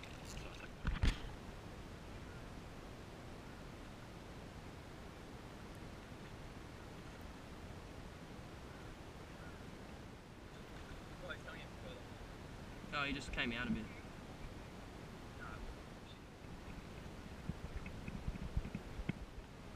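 Water splashes as a person swims nearby.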